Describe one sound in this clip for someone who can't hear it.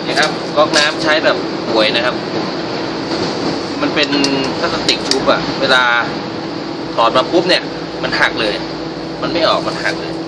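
Pliers clink against a metal tap.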